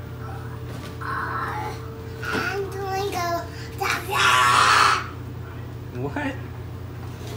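A young toddler babbles and squeals nearby.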